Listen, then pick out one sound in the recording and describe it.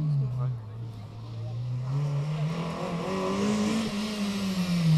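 A second rally car engine revs as it approaches around a bend.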